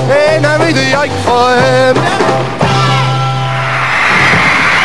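A pop band plays loudly, with electric guitars and drums.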